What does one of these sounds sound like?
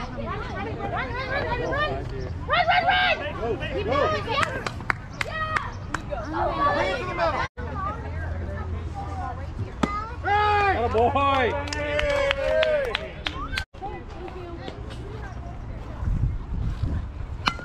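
Children and adults shout and cheer across an open field.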